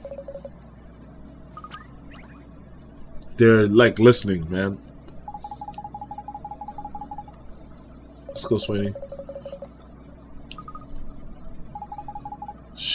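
Rapid electronic beeps chirp in short bursts.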